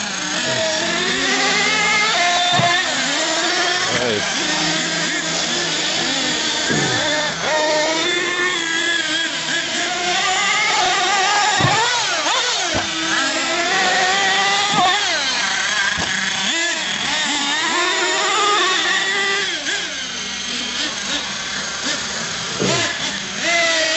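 A toy car's electric motor whines and revs.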